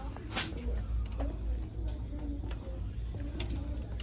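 A shopping cart rolls and rattles over a hard floor.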